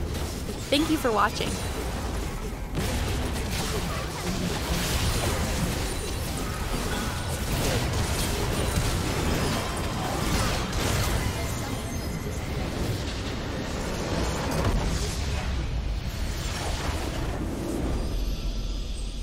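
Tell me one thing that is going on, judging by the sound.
Game spell effects crackle and boom in a busy battle.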